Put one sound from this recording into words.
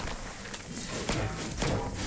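A pickaxe thuds against a wooden barrel.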